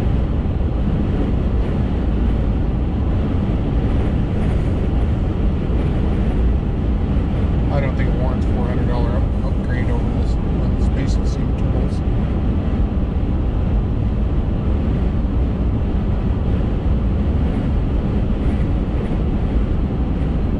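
Tyres roar steadily on asphalt.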